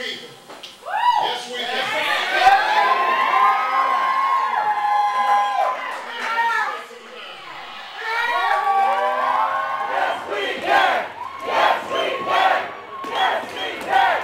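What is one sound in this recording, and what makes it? A crowd of people cheers and shouts loudly nearby.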